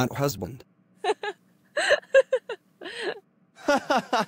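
A woman giggles.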